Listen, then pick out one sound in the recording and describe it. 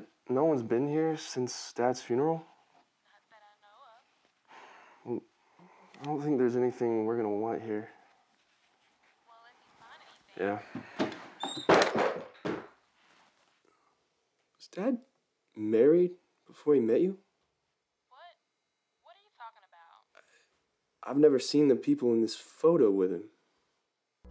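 A young man speaks into a telephone handset.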